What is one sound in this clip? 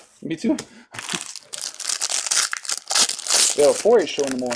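A foil wrapper crinkles loudly close by.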